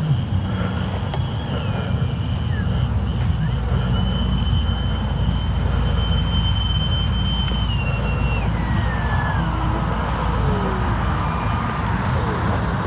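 Twin electric ducted fans of a model jet whine and throttle down as it comes in to land.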